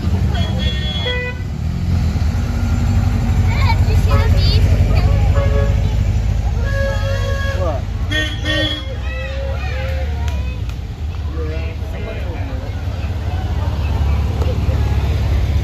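Men and women nearby chat and call out casually.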